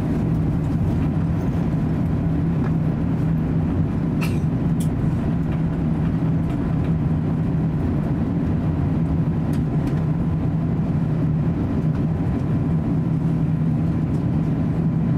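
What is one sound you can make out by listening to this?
A jet engine hums with a steady low drone as an airliner taxis.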